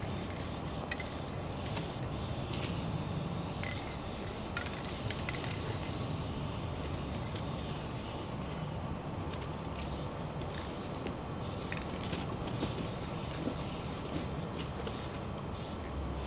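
A spray can hisses in short and long bursts.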